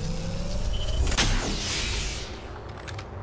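An electric crackle bursts and fades.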